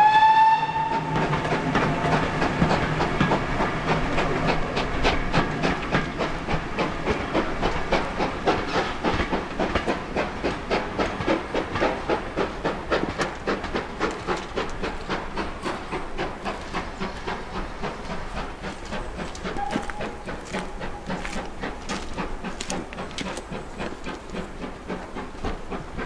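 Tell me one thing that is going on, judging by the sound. Train wheels clatter rhythmically over rail joints and slowly fade into the distance.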